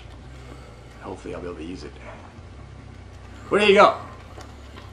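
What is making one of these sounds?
A man speaks briefly and casually close to a microphone.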